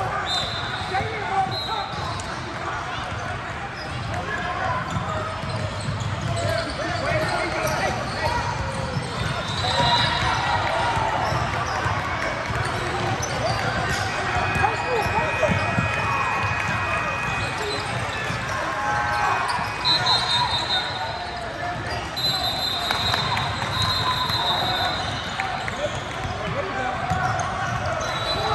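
Basketballs bounce on a wooden floor.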